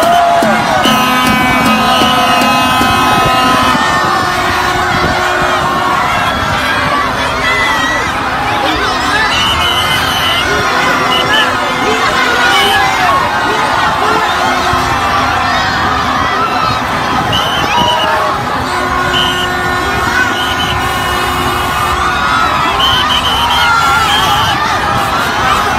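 A large crowd cheers and shouts loudly all around, outdoors.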